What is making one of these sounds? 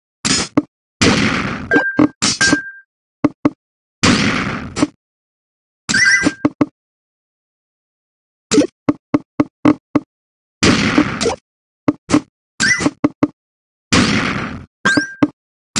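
Game sound effects whoosh as rows of blocks clear.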